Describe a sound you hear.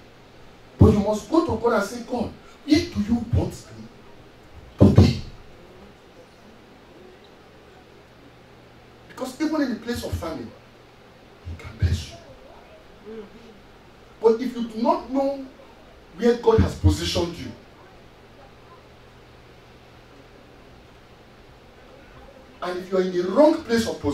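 A man preaches with animation into a microphone, his voice carried over loudspeakers in a small room.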